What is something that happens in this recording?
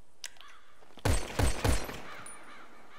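Three loud gunshots ring out in quick succession.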